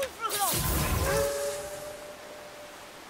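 A burst of crackling energy flares and fades with a ringing shimmer.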